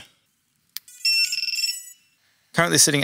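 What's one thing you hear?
A drone beeps in a quick series of electronic tones.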